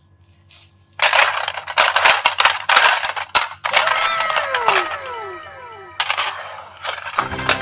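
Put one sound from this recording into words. Hollow plastic containers clatter and rattle as a hand rummages through them.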